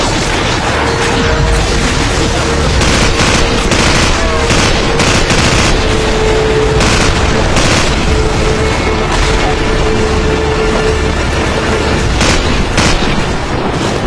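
A machine gun fires in rapid bursts.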